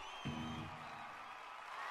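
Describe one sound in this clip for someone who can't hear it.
An electric guitar rings out a short chord.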